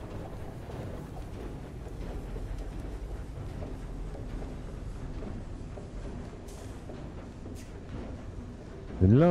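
A vessel's engine rumbles low and steadily.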